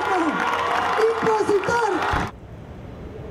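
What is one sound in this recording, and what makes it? A woman shouts passionately into a microphone over loudspeakers.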